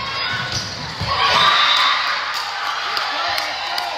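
A volleyball thumps off players' arms and hands.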